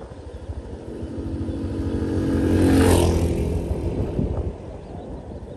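Another motorcycle roars past close by and fades away.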